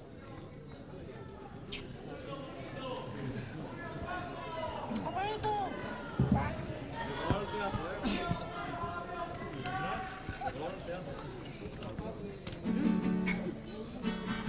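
Acoustic guitars strum along.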